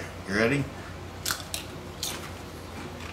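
A man crunches on a crisp snack.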